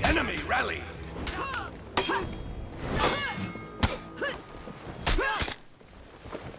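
Swords clash and ring sharply in quick fighting.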